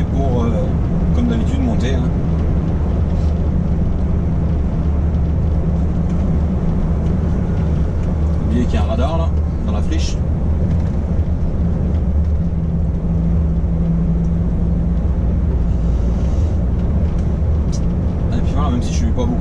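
A truck engine drones steadily inside the cab.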